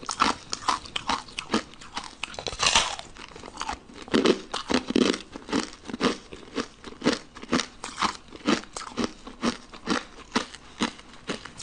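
A young woman bites and crunches loudly on brittle candy close to a microphone.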